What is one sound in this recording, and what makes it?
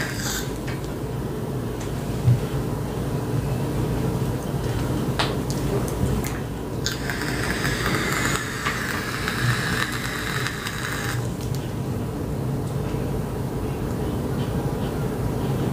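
A woman breathes out a long puff of vapour.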